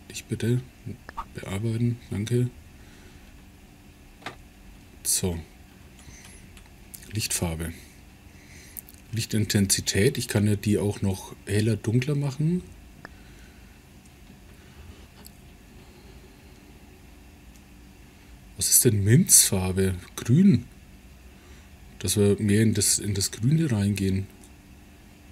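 A middle-aged man talks calmly into a close microphone, in short bursts with pauses.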